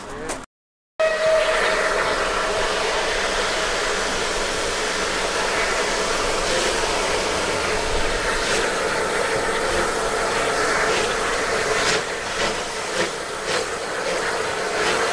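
A steam locomotive puffs loudly as it approaches.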